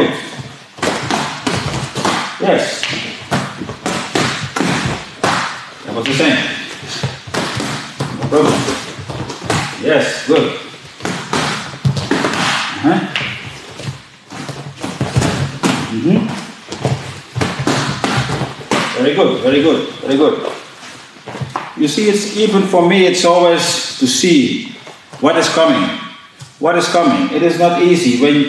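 A man speaks calmly and clearly nearby.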